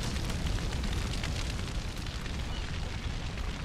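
Footsteps crunch on dry dirt.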